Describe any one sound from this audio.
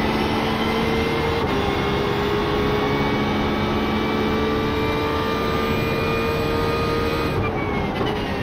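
A racing car engine roars at high speed, rising in pitch through the gears.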